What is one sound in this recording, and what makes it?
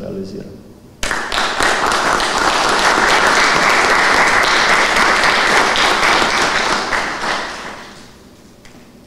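An audience applauds loudly, then the clapping fades away.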